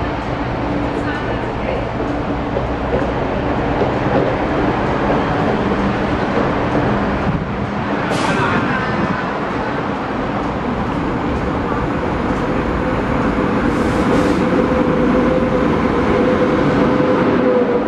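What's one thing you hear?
A train rumbles as it pulls slowly into a station.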